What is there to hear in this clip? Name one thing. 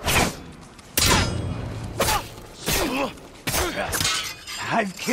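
Steel swords clash and ring sharply.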